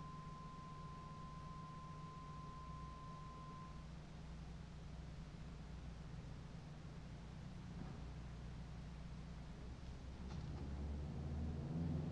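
An organ plays soft, low sustained notes.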